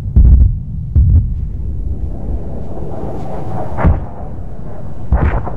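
Rockets launch one after another with deep, booming blasts.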